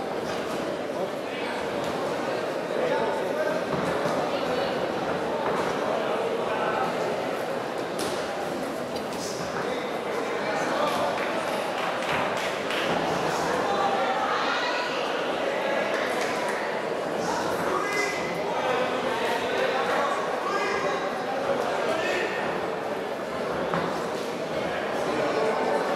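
A crowd murmurs and shouts in an echoing hall.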